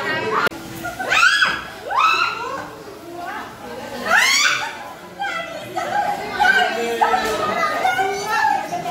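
A teenage girl shrieks and laughs loudly.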